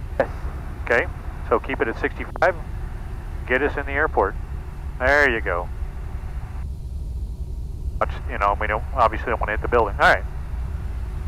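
A man speaks calmly through a headset radio, in short bursts.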